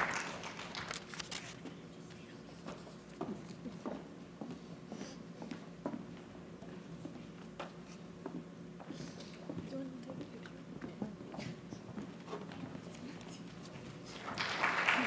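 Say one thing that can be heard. Shoes click on a wooden stage floor.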